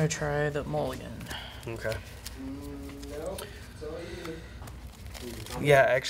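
Playing cards riffle and slap softly as they are shuffled.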